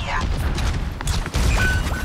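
Energy weapon fire crackles in short bursts.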